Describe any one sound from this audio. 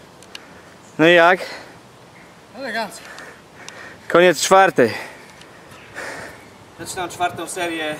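A man grunts and shouts loudly with effort.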